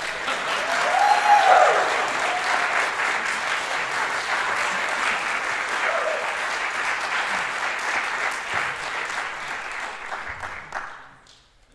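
An audience claps and applauds steadily in a large hall, then the clapping dies away.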